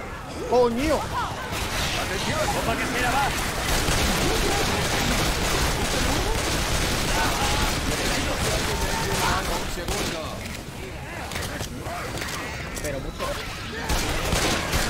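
A horde of creatures snarls and shrieks close by.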